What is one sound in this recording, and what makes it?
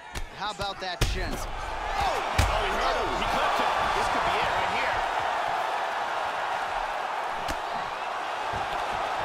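A crowd roars and cheers loudly.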